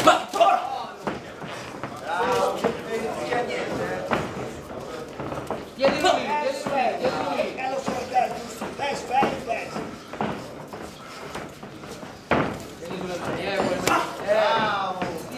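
A crowd of men shout and cheer loudly in an echoing hall.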